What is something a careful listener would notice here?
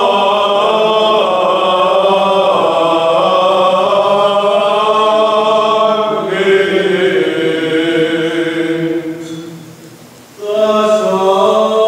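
Men's voices chant together in slow, sustained song, echoing in a large, reverberant space.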